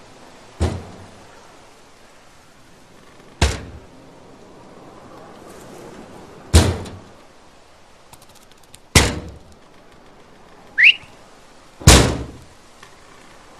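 A rifle fires sharp shots one after another, each ringing out briefly.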